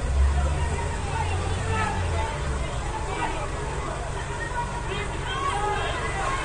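A large crowd shouts and chatters outdoors.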